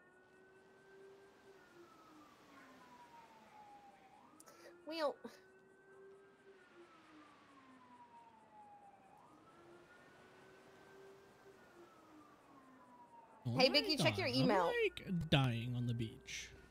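A police siren wails in a slow rising and falling tone.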